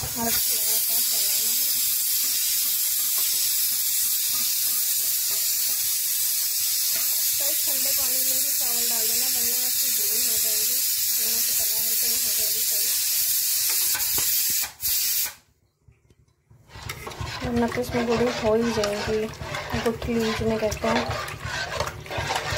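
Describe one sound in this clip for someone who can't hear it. A metal ladle stirs and scrapes inside a metal pot of thick liquid.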